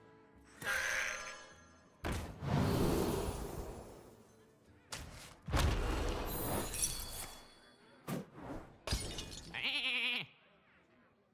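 Magical chimes and whooshes ring out in a card game.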